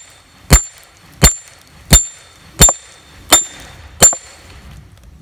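A hammer strikes a metal wedge in steady, ringing blows.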